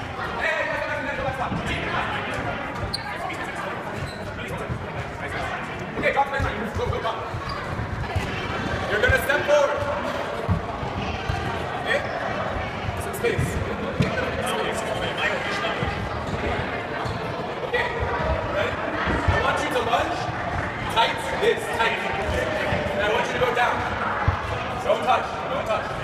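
Sneakers squeak and thud on a wooden floor.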